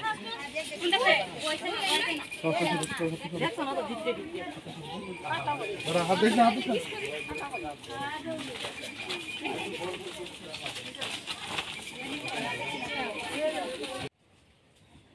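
A crowd of men and women talk and call out nearby, outdoors.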